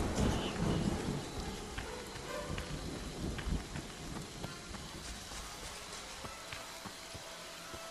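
Footsteps crunch quickly over leaves and dirt outdoors.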